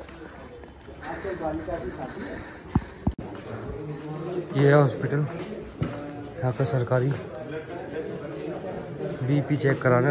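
A man talks calmly close by.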